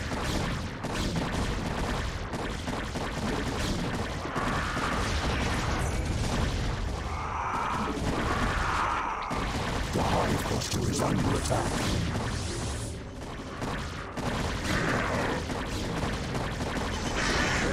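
Laser weapons zap and fire in rapid bursts.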